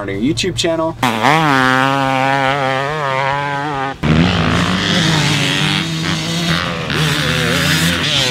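A dirt bike engine roars and revs up and down.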